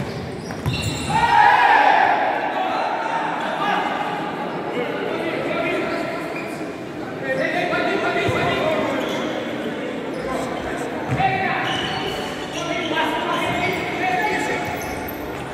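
A ball thuds against a hard floor as players kick it.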